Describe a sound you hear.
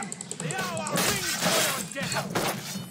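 Swords clash in a fight.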